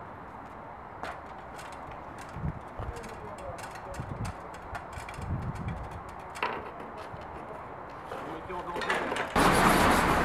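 Broken glass clinks and cracks as it is knocked from a window frame.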